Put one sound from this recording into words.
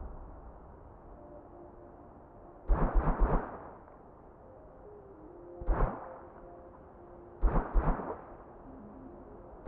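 Soft game music plays quietly.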